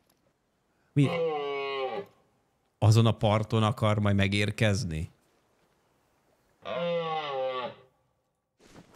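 A moose bellows with a long, drawn-out call.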